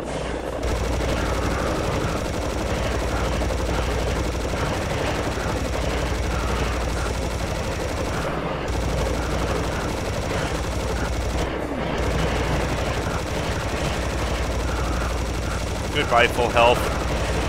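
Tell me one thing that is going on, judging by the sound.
A minigun fires in a rapid, steady rattle.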